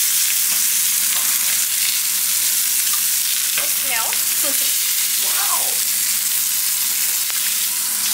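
A metal spatula scrapes against a frying pan.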